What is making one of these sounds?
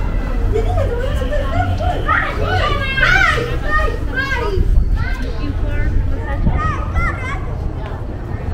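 Young people chat nearby as they walk past, outdoors.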